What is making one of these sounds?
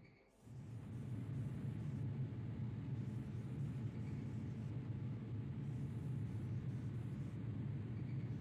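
Machines hum and rumble steadily.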